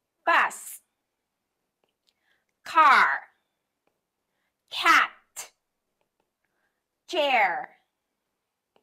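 A young woman pronounces single words clearly and slowly, close to a clip-on microphone.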